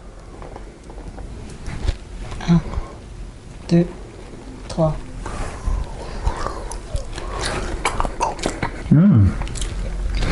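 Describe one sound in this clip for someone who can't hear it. A young man speaks casually up close.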